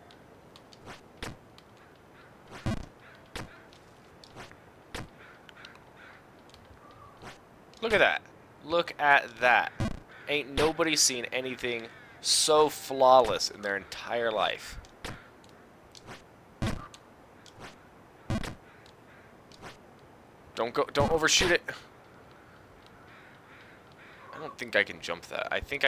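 Short game sound effects click and pop.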